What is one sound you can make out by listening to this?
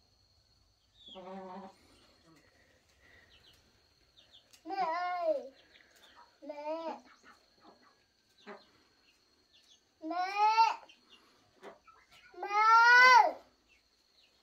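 A small child calls out loudly in a high, wailing voice.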